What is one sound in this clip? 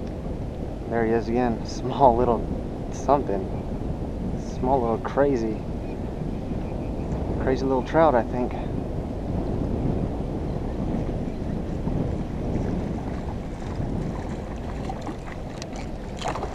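Water laps gently against a small boat's hull.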